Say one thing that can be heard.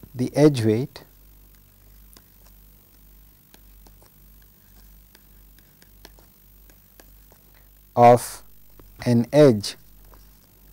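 A pen taps and scratches softly on a tablet.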